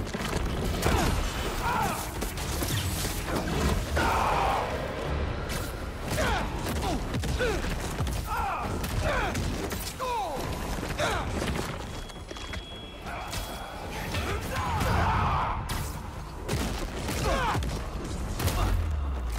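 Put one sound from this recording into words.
Heavy blows thud during a fight.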